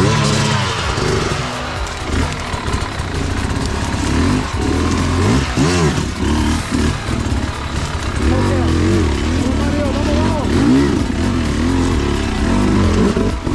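A dirt bike engine revs hard in bursts, close by.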